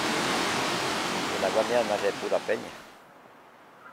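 A mountain stream rushes over rocks.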